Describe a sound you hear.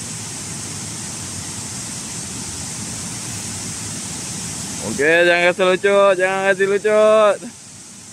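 Water splashes softly.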